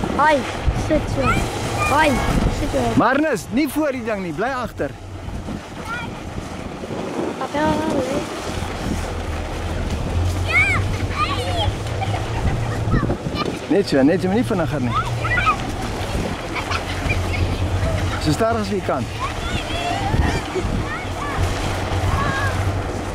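Young children shout and squeal with excitement outdoors.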